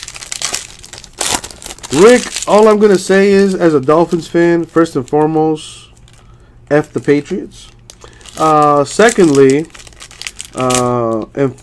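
A foil pack tears open.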